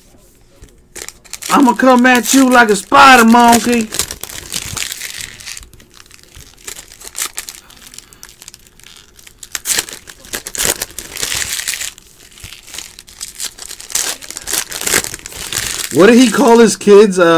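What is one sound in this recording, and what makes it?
A foil wrapper crinkles and tears as it is opened by hand.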